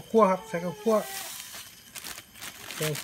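Powder is poured into a pot with a soft hiss.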